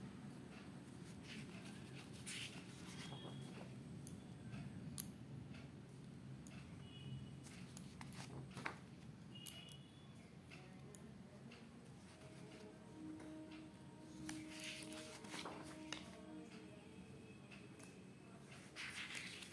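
Paper pages are turned and rustle.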